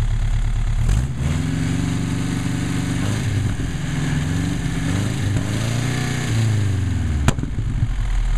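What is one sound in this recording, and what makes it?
An engine revs up and down as its throttle is worked.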